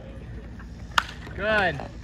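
A bat cracks sharply against a baseball.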